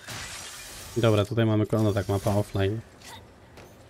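A man talks through a close microphone with animation.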